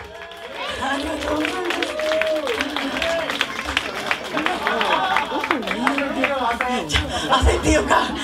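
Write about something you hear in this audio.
A live rock band plays loudly.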